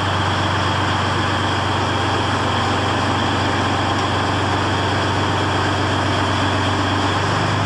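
Steel tracks clank and rattle as a heavy vehicle rolls slowly forward.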